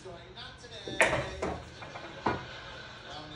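Pool balls clack together and knock against the table cushions.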